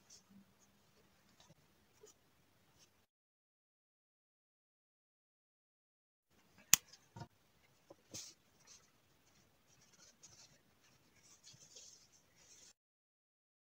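Yarn rustles softly as hands handle a crocheted piece.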